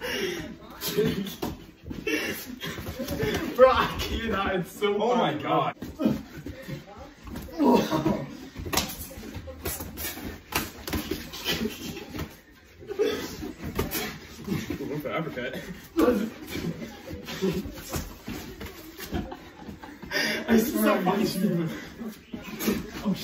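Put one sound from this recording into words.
Feet thump and shuffle on a carpeted floor.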